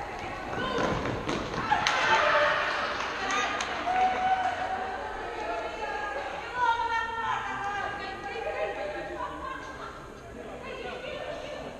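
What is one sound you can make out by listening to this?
A ball thuds and bounces on a hard floor.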